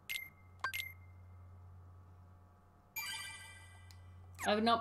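A bright game chime rings out.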